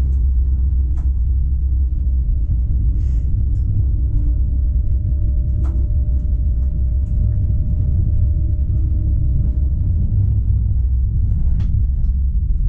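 Tram wheels clack now and then over rail joints.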